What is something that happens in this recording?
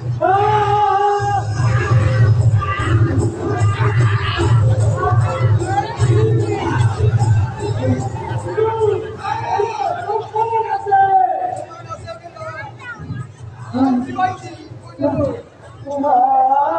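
Men sing and shout with emotion through loudspeakers, outdoors.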